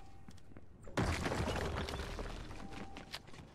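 Wooden building pieces slam into place with a loud clatter.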